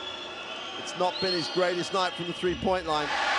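A crowd chants loudly in rhythm.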